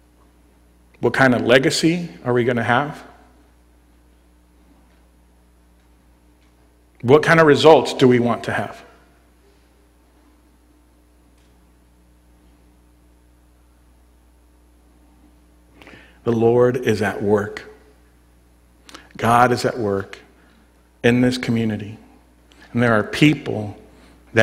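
A man speaks calmly into a microphone in bursts with long pauses.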